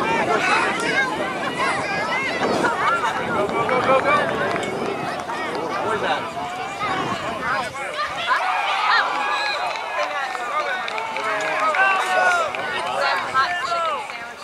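A crowd of children and adults shouts and cheers outdoors.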